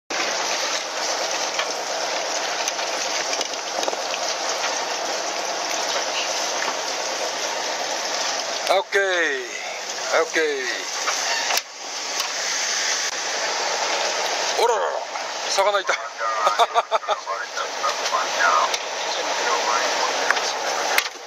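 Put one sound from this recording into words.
Wind rushes over a boat at sea.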